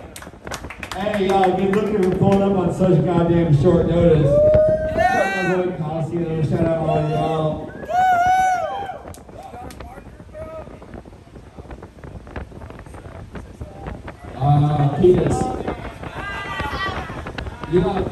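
A man raps through a microphone over a club sound system.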